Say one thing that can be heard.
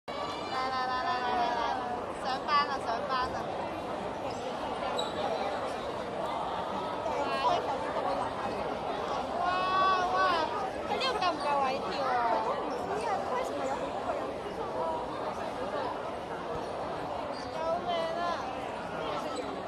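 A crowd of young women and men chatters and calls out nearby in an echoing hall.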